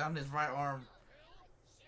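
A young man speaks briefly and casually close to a microphone.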